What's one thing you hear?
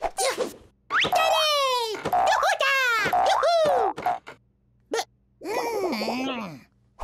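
A cartoon chick cries out in a high, sliding voice while falling.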